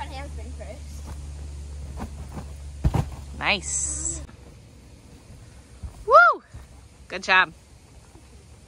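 Bare feet thump on a trampoline mat.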